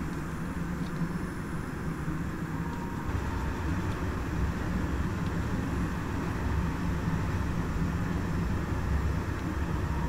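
A locomotive engine rumbles steadily.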